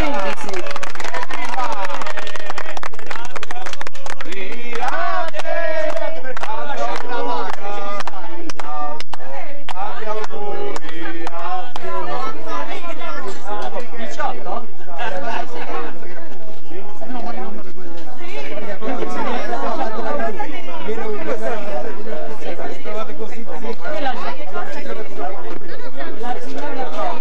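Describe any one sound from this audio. A crowd of men and women chat and laugh nearby.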